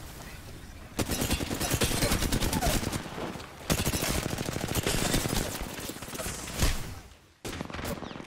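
Rapid gunfire bursts in loud, quick volleys.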